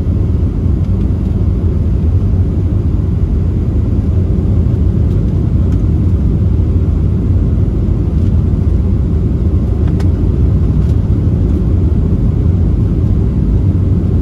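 Jet engines roar steadily in a deep, constant rumble inside an airplane cabin.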